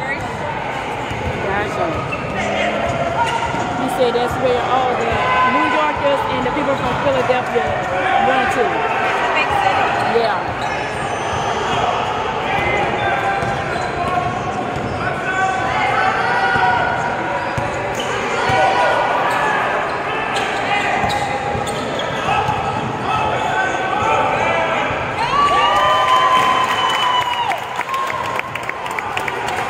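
Sneakers squeak sharply in a large echoing gym.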